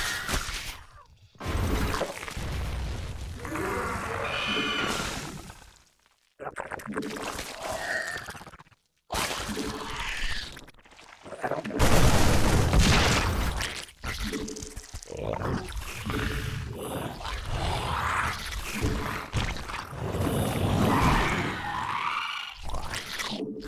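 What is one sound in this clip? A young man talks over a microphone.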